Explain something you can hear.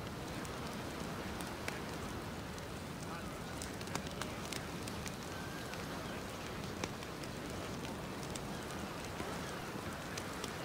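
A campfire crackles and pops steadily.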